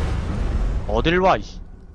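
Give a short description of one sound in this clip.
A fireball bursts with a crackling roar.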